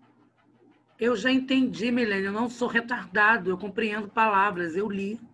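A man speaks calmly into a microphone, as if in an online call.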